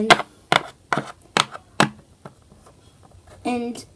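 A small plastic toy is set down on a hard surface.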